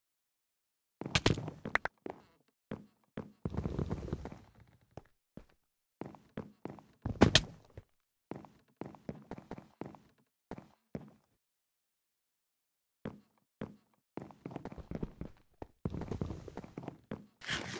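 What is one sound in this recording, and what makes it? Blocks are placed with quick, soft thuds.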